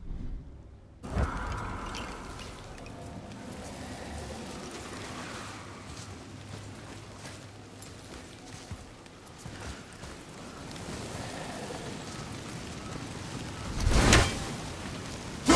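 Footsteps crunch over grass and dirt outdoors.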